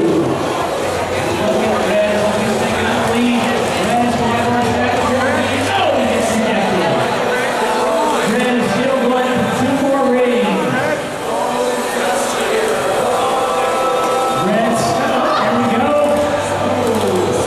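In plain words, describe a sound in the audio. A crowd of young people chatters in a large echoing hall.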